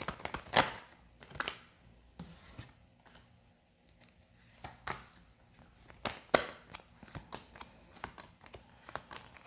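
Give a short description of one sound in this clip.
Cards are laid down on a wooden table with soft taps and slides.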